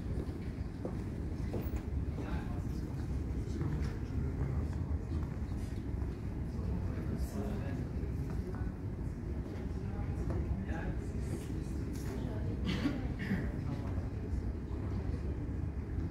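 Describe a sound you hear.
Footsteps tap on a hard floor in a large echoing hall.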